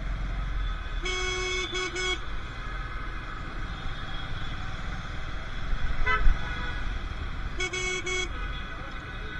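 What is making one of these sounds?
Vehicle horns honk nearby in short bursts.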